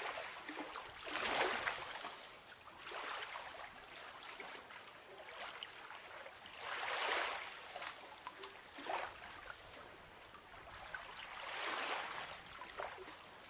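Paper pages rustle and swish as they are turned.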